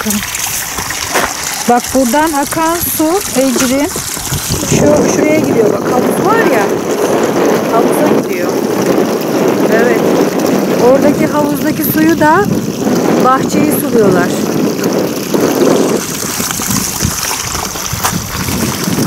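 Water trickles from a spout into a trough.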